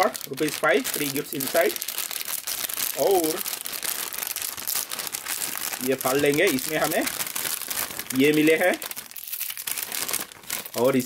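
A plastic snack wrapper crinkles and rustles as it is torn open.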